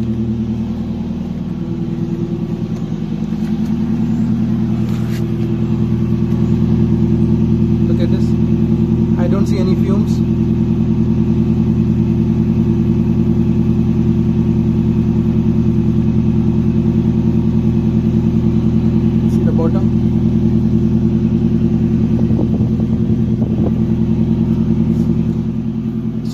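Exhaust puffs from a vehicle's tailpipe in a fast, even beat.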